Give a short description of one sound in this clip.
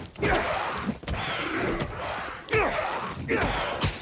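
Punches land with heavy thuds during a fight.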